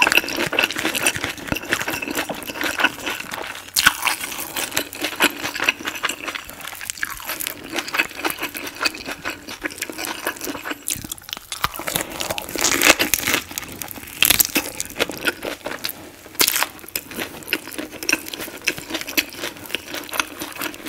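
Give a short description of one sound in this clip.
A woman chews food wetly and closely into a microphone.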